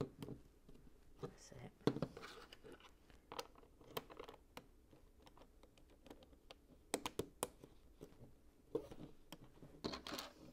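Plastic toy bricks click and clatter as hands fit them together.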